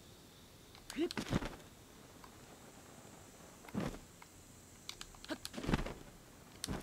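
A paraglider snaps open.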